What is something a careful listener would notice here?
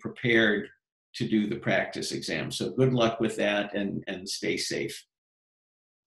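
A man talks calmly and close to a microphone, then falls silent.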